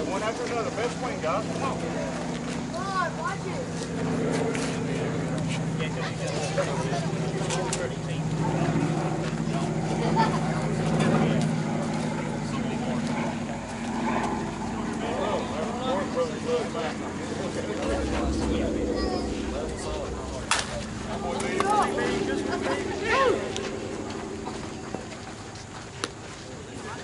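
Men talk and call out across an open field.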